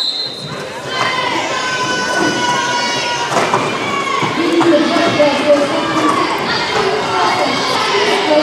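Roller skate wheels squeak and rumble on a hard floor in an echoing hall.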